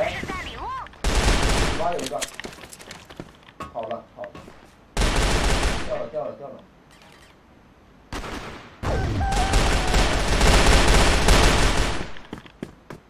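Rapid gunfire bursts in loud volleys.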